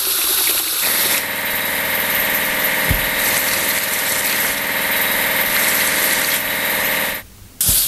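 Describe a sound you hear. A spinning brush whirs as it scrubs.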